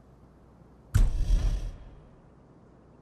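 A heavy metal clunk rings out once with a rushing whoosh.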